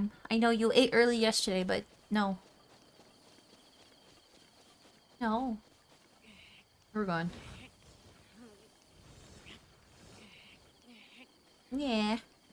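A young woman speaks with animation into a microphone in short bursts.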